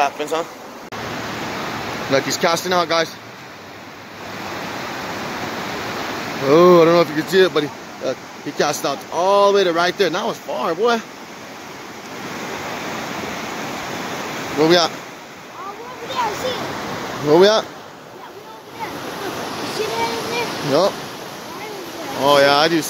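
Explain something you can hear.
A fast river rushes and splashes over rocks.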